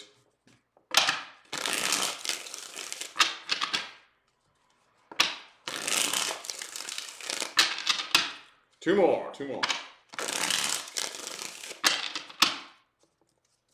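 Playing cards riffle and shuffle with a quick fluttering rustle.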